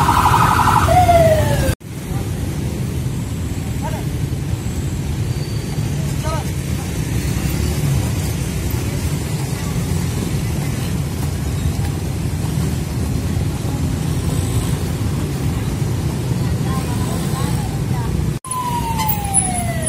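Motorbike engines hum as they ride past.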